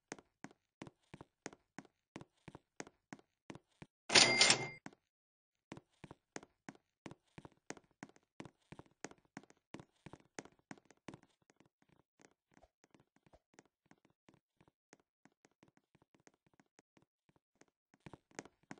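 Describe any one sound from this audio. Footsteps patter quickly and steadily in a game.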